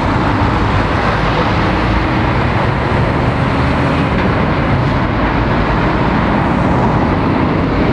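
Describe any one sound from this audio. A lorry engine rumbles steadily nearby.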